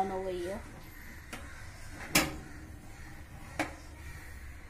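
A metal oven rack slides and clinks.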